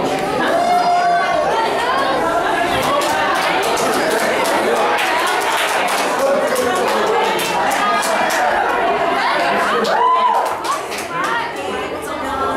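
A crowd chatters and calls out excitedly nearby.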